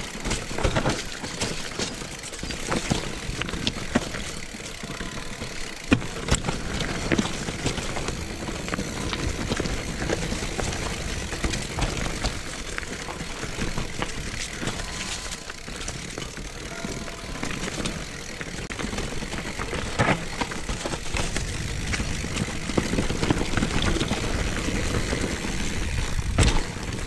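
Wind rushes past the rider.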